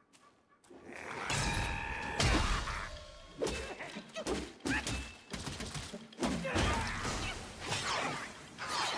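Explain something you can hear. A staff clashes and strikes with heavy impacts.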